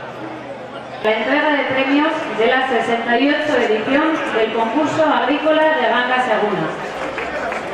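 A woman speaks calmly through a microphone and loudspeaker.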